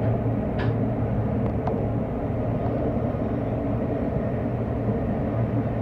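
A subway train rumbles steadily through a tunnel.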